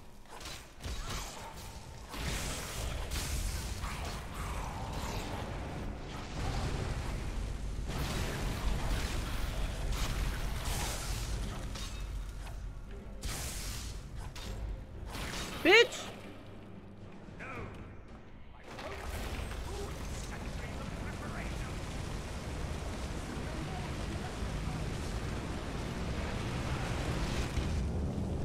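Game characters shout and speak in deep voices.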